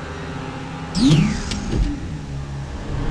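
A heavy sliding door whooshes open.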